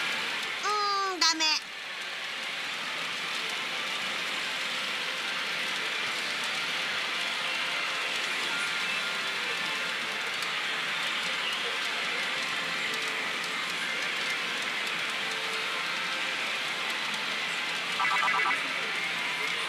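A slot machine plays bright electronic chimes.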